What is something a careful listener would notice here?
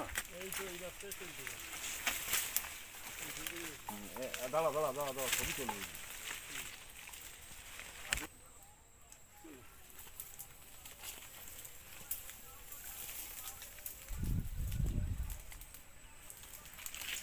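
Leaves and branches rustle and snap as people push through dense undergrowth.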